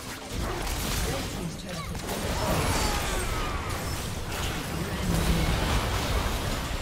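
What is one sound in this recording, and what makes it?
Video game spell effects whoosh, crackle and clash in a busy fight.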